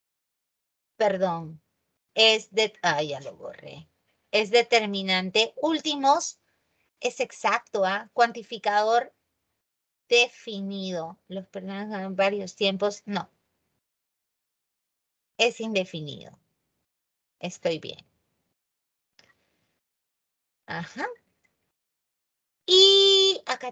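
A woman speaks calmly through an online call, in bursts with pauses.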